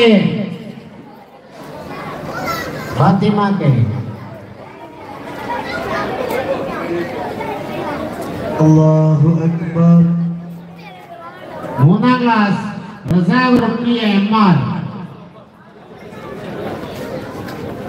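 A man speaks into a microphone over loudspeakers, calling out with animation in a large echoing space.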